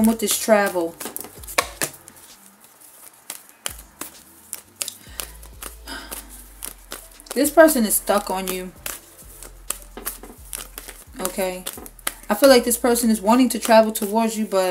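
Playing cards are shuffled, snapping and riffling.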